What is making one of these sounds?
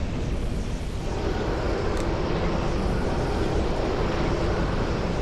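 A fire roars.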